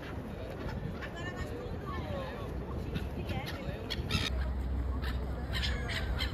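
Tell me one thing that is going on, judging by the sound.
Seagulls cry overhead.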